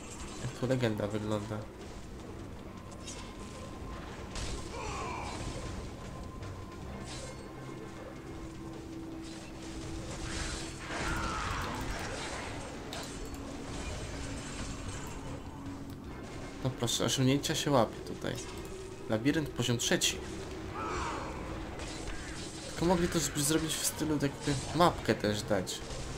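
Magic blasts crash and crackle in quick bursts.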